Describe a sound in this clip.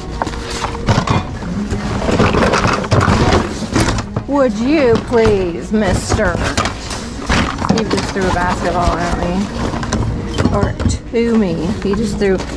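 Plastic objects clatter and rustle as a hand rummages through a full bin.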